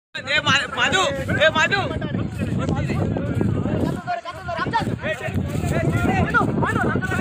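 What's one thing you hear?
Several men shout and call out excitedly outdoors.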